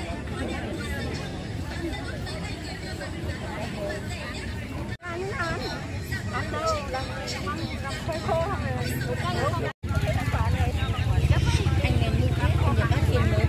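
Middle-aged women talk with animation close by.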